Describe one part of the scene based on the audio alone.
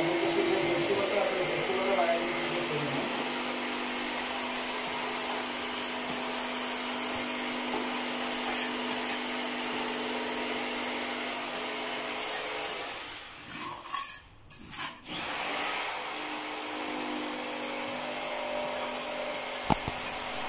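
A trowel scrapes wet mortar against a wall.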